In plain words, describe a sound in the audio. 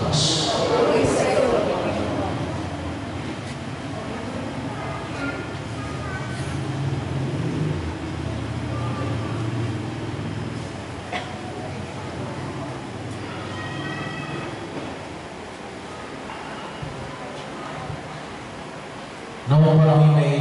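A middle-aged man speaks slowly through a loudspeaker.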